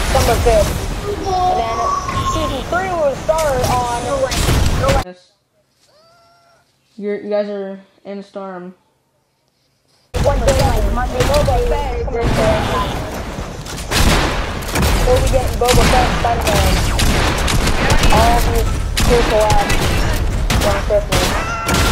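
Heavy metallic thuds and crashes pound repeatedly.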